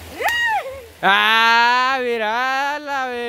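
A young woman sings loudly into a microphone.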